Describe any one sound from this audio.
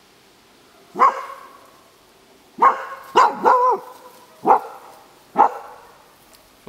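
A dog barks loudly several times.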